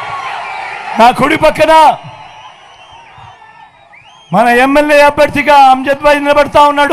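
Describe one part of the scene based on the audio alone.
A man speaks forcefully into a microphone, heard loudly over loudspeakers.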